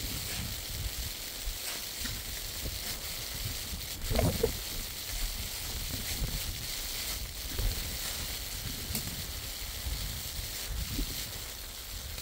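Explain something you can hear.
A shovel scrapes and digs through snow and sand.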